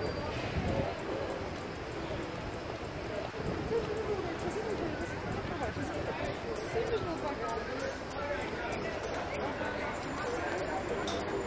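Footsteps scuff on stone steps.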